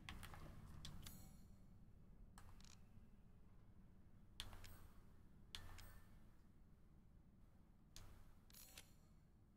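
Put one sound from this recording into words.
Short menu clicks and chimes sound from a video game.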